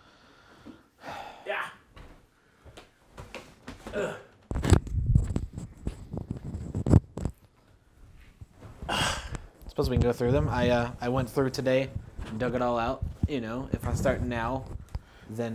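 A man speaks casually close to a microphone.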